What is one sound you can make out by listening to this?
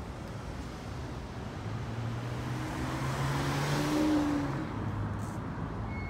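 A car drives past nearby, growing louder and then fading.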